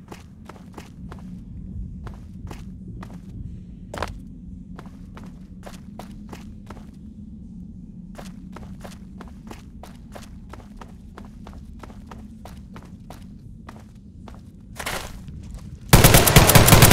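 Footsteps crunch steadily on a rocky floor.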